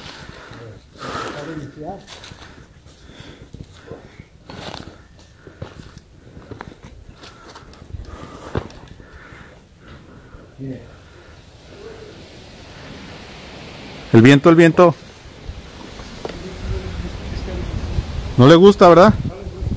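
Footsteps crunch and scrape over loose stones.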